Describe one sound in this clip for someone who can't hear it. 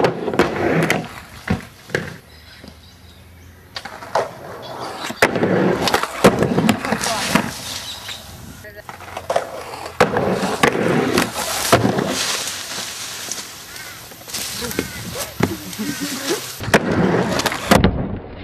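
A skateboard clacks and slams down hard.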